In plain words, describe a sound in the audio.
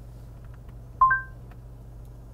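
A car's dashboard system gives a short electronic chime.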